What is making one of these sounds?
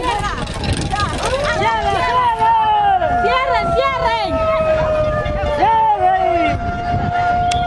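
A crowd of young people shouts outdoors.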